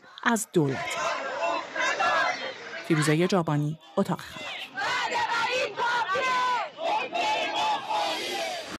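A crowd of men and women chants and shouts loudly outdoors.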